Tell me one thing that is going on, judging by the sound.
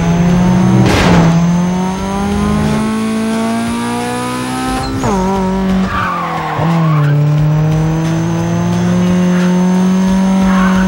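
A car engine revs hard, rising in pitch and dropping as gears shift.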